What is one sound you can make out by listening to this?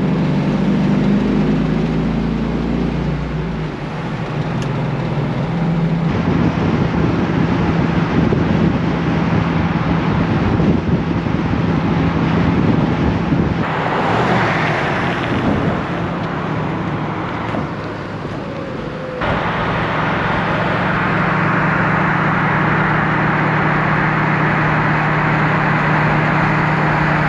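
A car's tyres roar on the road.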